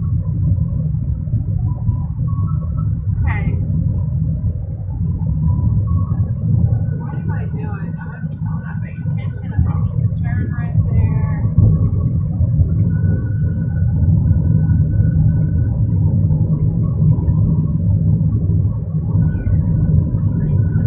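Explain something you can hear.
A car engine hums and tyres rumble steadily on the road, heard from inside the car.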